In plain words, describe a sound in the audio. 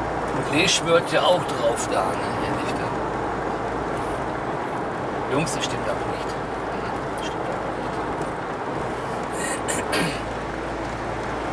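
A car engine hums steadily while tyres roll over the road from inside the car.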